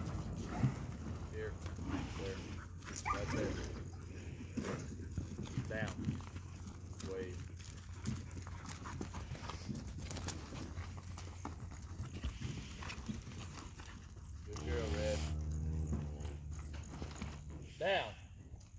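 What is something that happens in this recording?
Cattle hooves thud and trample on soft, wet ground.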